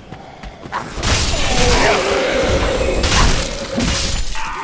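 Swords clash and clang in a fight.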